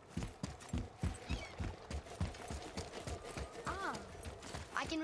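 Footsteps thud quickly on stone.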